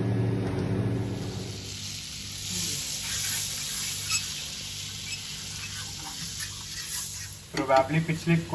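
Butter sizzles and bubbles in a hot pan.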